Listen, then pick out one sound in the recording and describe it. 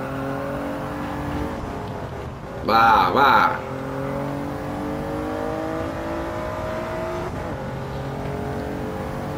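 A racing car engine drones and climbs steadily in pitch through the gears.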